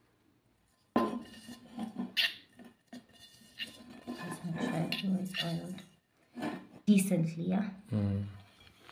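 Fingers rub and squeak against a metal bowl.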